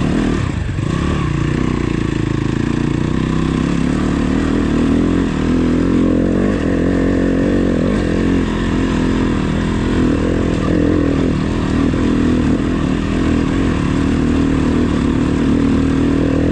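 A motorcycle engine revs hard and close.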